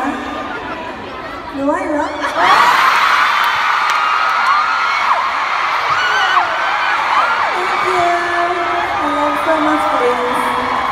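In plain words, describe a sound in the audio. A young woman talks and laughs into a microphone over loudspeakers in a large echoing hall.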